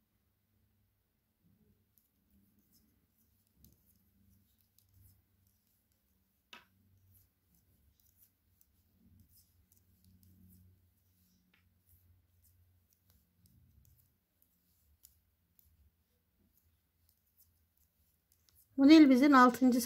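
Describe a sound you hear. Knitting needles click and scrape softly against each other.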